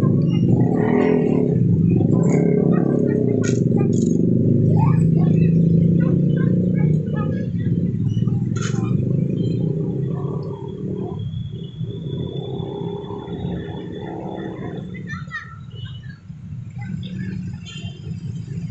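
A train rumbles along the tracks in the distance.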